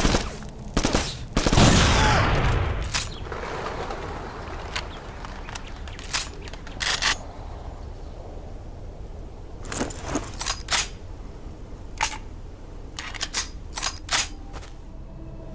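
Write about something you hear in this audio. Gunshots crack in short bursts.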